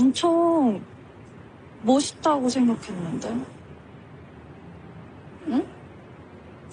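A young woman speaks softly and emotionally, close by.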